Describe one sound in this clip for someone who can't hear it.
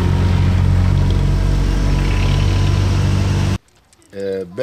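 A road roller's diesel engine rumbles steadily close by.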